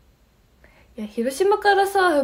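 A young woman speaks close to a microphone with animation.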